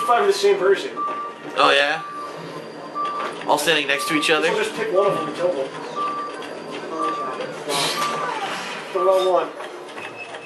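A countdown timer beeps at a steady pace.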